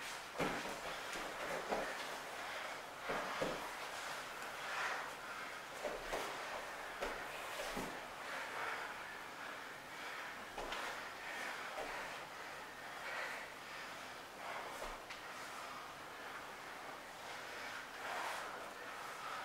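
Bodies thump and scuff on a padded mat.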